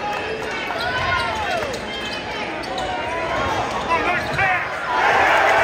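A large crowd cheers and murmurs in an echoing gym.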